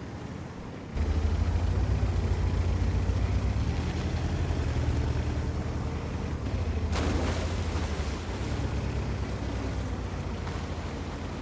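A heavy tank engine rumbles loudly.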